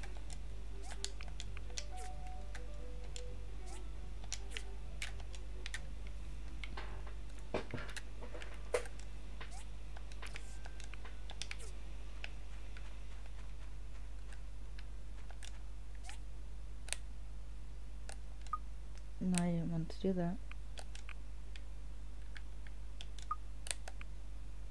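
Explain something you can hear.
Soft menu clicks and blips sound now and then.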